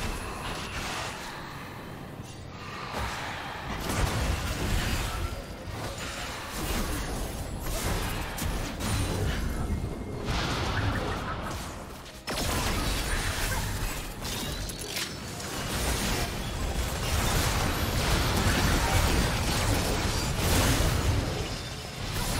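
Game spell effects whoosh, crackle and burst in quick succession.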